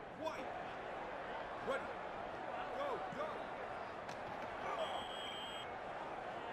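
A large stadium crowd cheers and roars steadily.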